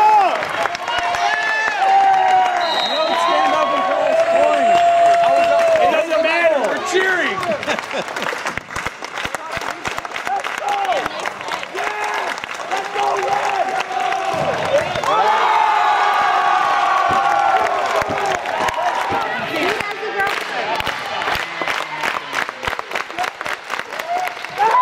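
A crowd of young men cheers and shouts loudly in an echoing gym.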